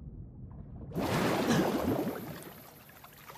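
Water splashes loudly as a swimmer surfaces.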